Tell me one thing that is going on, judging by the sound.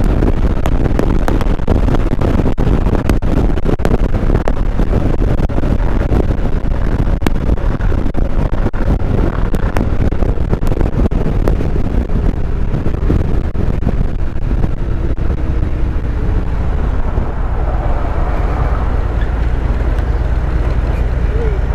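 A motorcycle engine rumbles steadily at highway speed.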